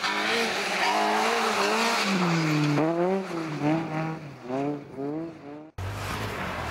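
A rally car engine revs hard and changes pitch as the car speeds through a bend.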